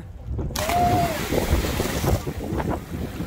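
Water churns and fizzes after a splash.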